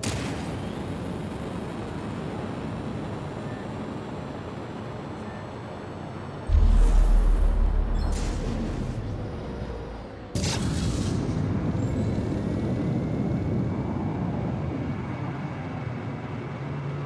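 A spaceship engine roars steadily.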